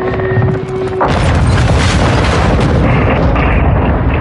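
A loud explosion booms nearby and rumbles away.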